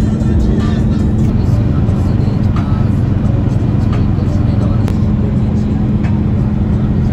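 Tyres roar steadily on a paved road.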